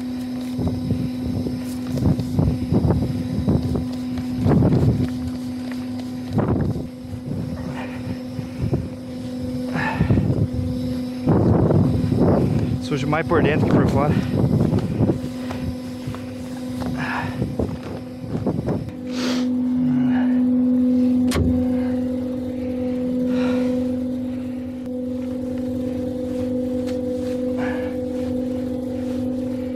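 A machine engine hums steadily close by.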